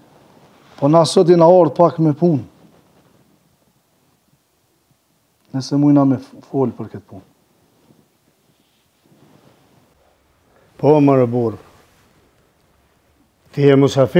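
A man speaks calmly up close, in short phrases with pauses.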